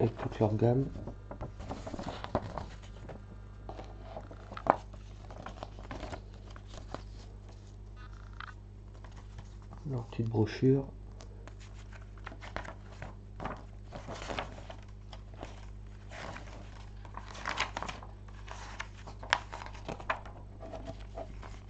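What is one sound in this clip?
Glossy paper pages rustle and flap as a booklet is leafed through.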